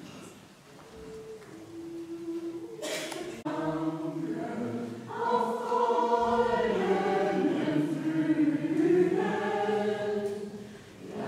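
A mixed choir sings together in a large echoing hall.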